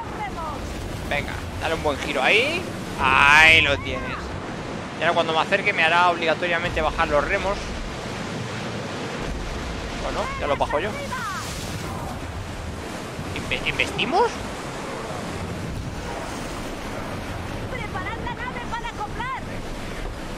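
Waves wash and splash against a sailing ship's hull.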